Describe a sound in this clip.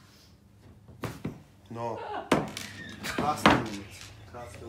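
A cork pops out of a bottle.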